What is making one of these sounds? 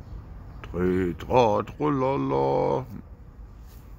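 A middle-aged man speaks up close through a face mask.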